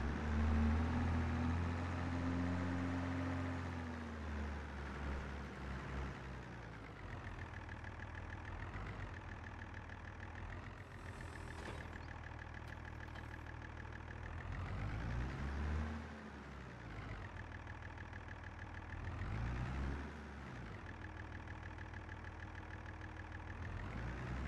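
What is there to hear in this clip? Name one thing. A diesel tractor engine drones as the tractor manoeuvres.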